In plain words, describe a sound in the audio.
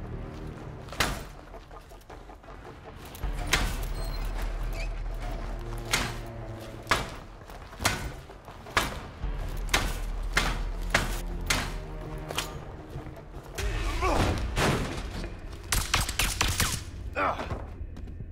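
Heavy blows land with sharp thuds, one after another.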